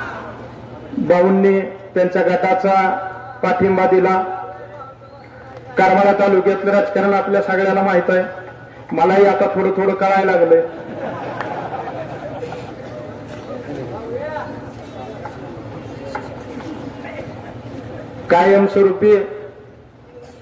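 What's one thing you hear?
A man speaks forcefully into a microphone through loudspeakers, in bursts with pauses.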